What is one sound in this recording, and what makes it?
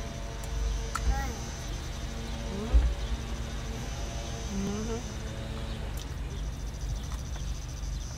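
A young woman bites into crunchy food close by.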